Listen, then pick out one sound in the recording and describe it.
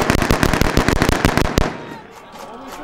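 Rapid gunshots crack in quick succession.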